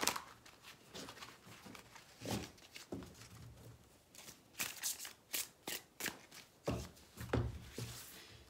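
Cards tap down onto a cloth-covered table.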